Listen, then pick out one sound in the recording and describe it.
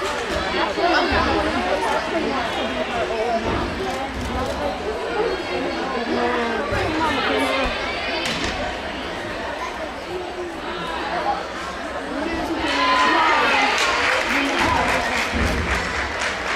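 Feet thud on a wooden balance beam.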